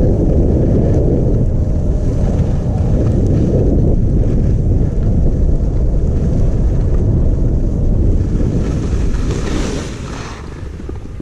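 Wind rushes loudly past the microphone at speed, then dies away.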